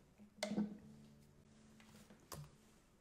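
A guitar string is plucked and rings briefly.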